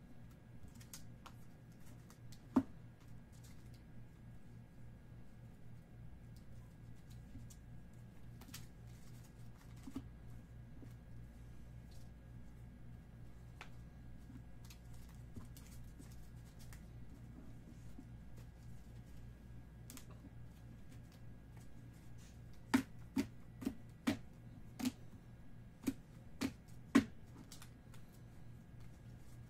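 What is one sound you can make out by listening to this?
Trading cards rustle and slide as hands shuffle through them.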